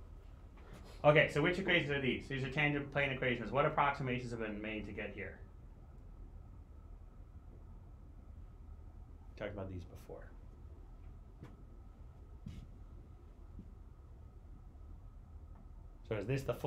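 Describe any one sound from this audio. A man speaks calmly through a microphone, lecturing.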